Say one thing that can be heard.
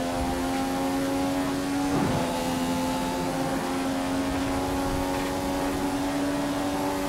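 A racing car engine screams at high speed with a steady, high whine.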